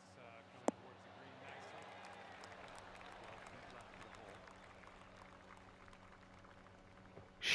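A distant crowd murmurs and applauds.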